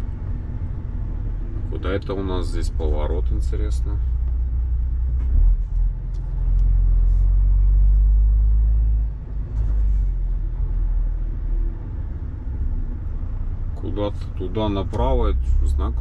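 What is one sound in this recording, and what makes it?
A truck engine hums low and steady from inside the cab.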